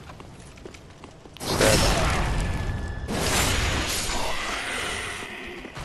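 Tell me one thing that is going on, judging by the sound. Metal blades clash and strike.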